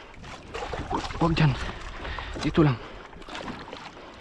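A large fish thrashes and splashes at the surface.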